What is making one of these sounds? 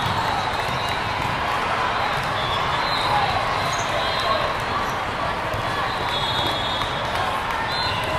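A crowd murmurs and chatters in a large echoing hall.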